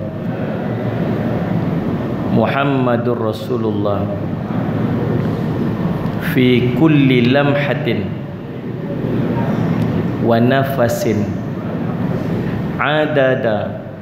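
A man speaks calmly through a microphone in an echoing room, with pauses between phrases.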